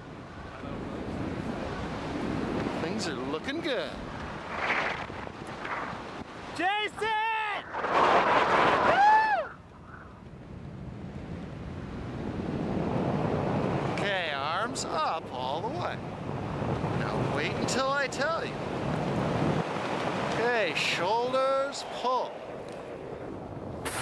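Wind rushes loudly past during a descent through the air.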